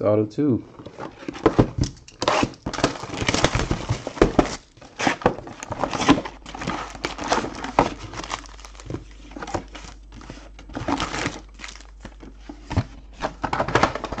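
Cardboard boxes knock and slide against each other.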